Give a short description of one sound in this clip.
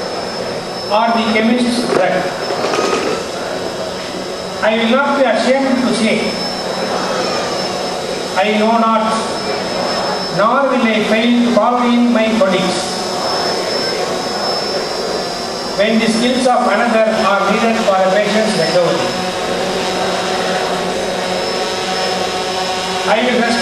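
A group of men and a woman read aloud together in unison, in bursts, through a loudspeaker.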